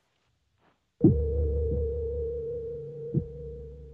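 A metal drill whirs with a steady hum.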